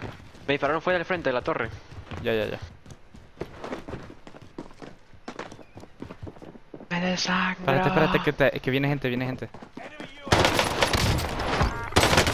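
Footsteps thud on metal stairs.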